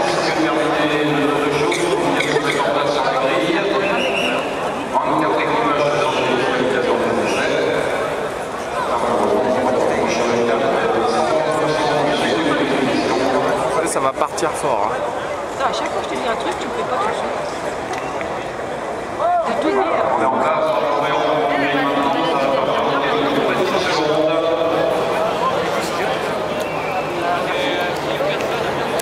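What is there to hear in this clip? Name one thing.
A crowd of men and women chatter nearby, outdoors.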